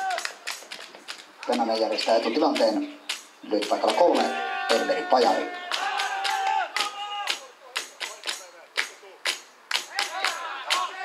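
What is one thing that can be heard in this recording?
Hands clap in a steady rhythm.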